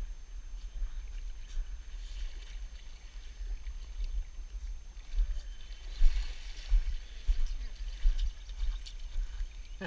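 Legs wade and splash through shallow river water.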